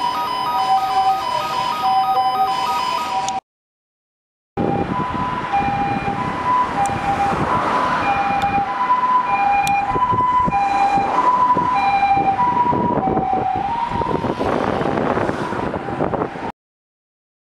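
An ambulance siren sounds a repeating two-tone call.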